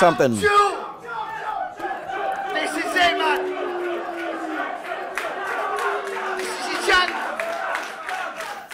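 A crowd cheers and shouts in a loud, echoing room.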